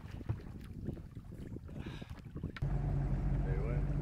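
Water splashes as a man drops into a lake.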